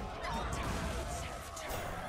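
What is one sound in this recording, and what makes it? A game spell bursts with a magical crackle.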